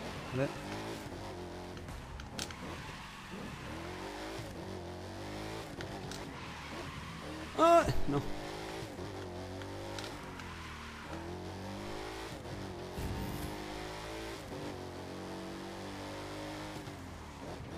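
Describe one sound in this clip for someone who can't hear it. A car engine revs and roars as it speeds up and slows down.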